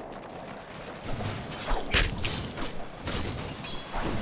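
Magic spells crackle and burst loudly during a fight.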